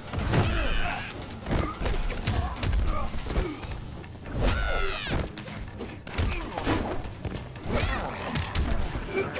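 Fighting-game punches and kicks land with heavy, thudding impacts.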